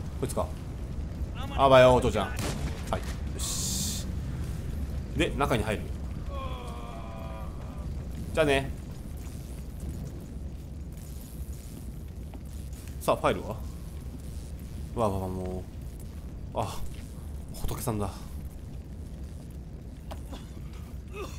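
A fire burns and crackles.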